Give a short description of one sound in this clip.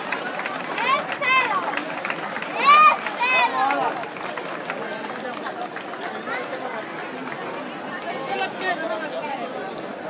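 Children shout and squeal excitedly close by.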